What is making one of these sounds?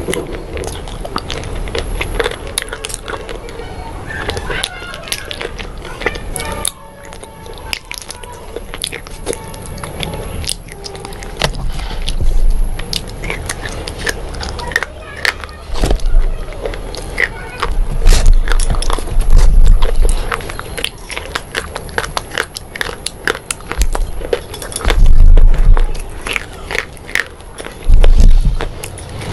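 A woman chews crunchy food close to a microphone.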